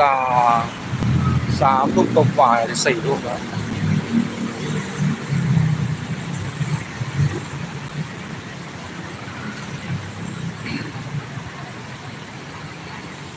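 Heavy traffic rumbles along a busy street nearby.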